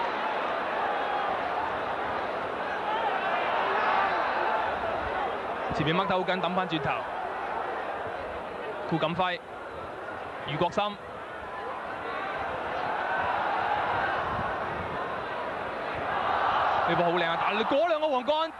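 A large crowd murmurs and roars steadily in an open stadium.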